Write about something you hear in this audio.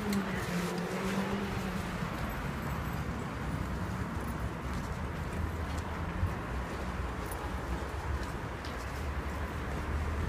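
A truck engine idles with a low rumble nearby.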